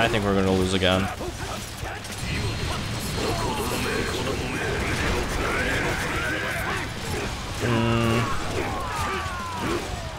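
Swords clash and slash repeatedly.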